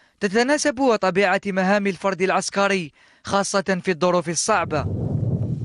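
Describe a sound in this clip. A man speaks calmly into a microphone, like a news presenter.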